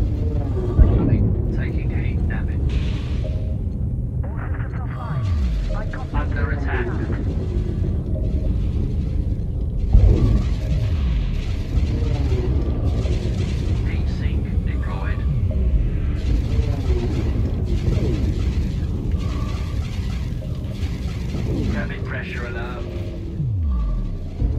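Explosions boom with deep falling rumbles.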